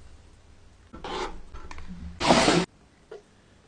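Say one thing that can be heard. A spoon stirs thick sauce in a metal pan.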